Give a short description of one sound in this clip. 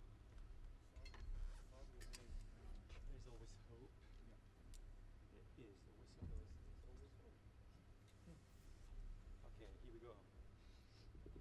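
A horn plays a melody.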